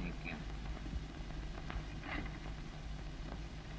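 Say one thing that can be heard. Papers rustle as a man handles them.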